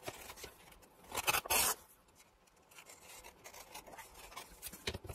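Thin tissue paper rustles and crinkles.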